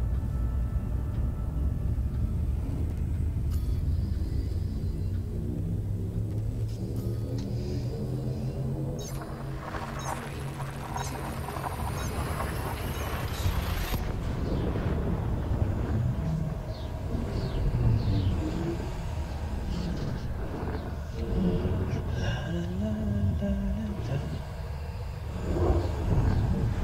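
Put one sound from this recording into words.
A spaceship's engine hums low and steady.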